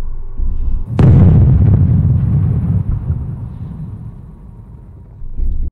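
A loud blast booms suddenly and rumbles as it slowly fades.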